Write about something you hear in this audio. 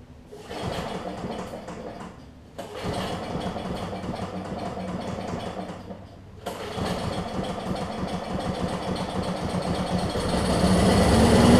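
A lawn mower engine sputters and coughs as its starter cord is pulled.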